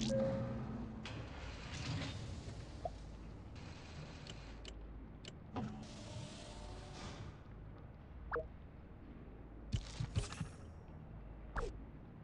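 Short game interface sounds click and chime.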